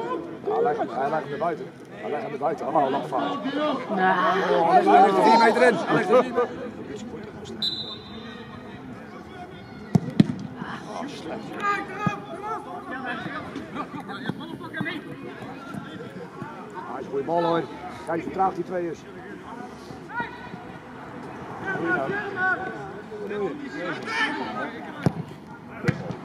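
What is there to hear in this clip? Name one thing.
Men shout and call out across an open playing field.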